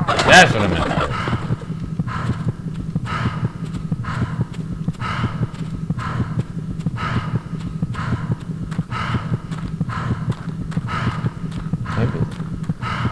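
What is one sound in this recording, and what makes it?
Heavy armoured footsteps thud steadily on the ground.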